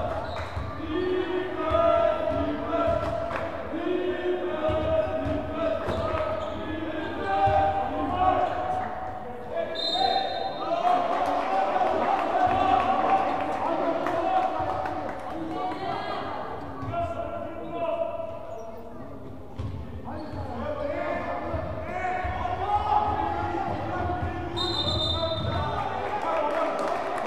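A crowd of spectators chants and cheers loudly in a large echoing hall.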